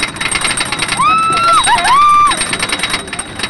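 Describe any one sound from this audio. A young woman screams loudly nearby.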